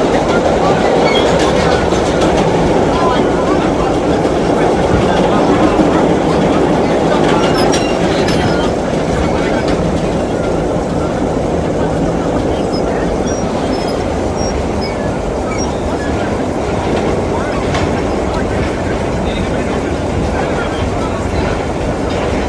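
A subway train rumbles and rattles loudly along the tracks.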